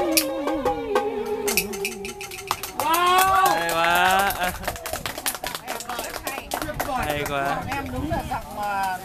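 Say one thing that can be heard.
A group of people clap their hands in time.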